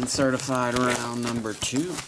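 A plastic wrapper crinkles.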